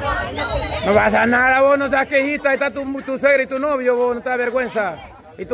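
A young woman gives a long, loud shout nearby.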